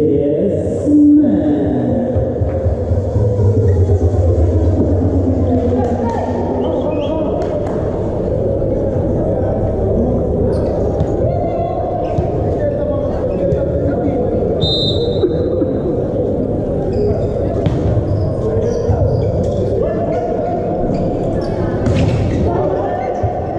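A volleyball is struck with hands in a large echoing hall.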